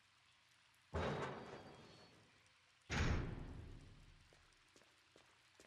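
A heavy metal door slowly creaks open, echoing.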